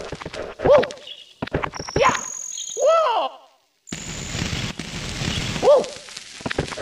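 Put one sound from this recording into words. A cartoon character yelps with short, high voice cries as it jumps.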